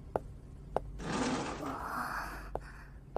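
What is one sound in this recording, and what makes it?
A young woman speaks in surprise, close by.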